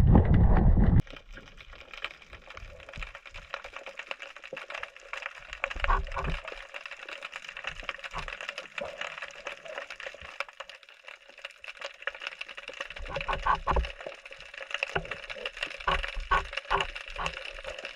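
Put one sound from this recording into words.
A soft, muffled underwater hush surrounds everything.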